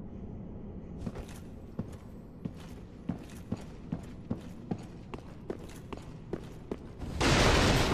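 Armoured footsteps clank quickly on a stone floor.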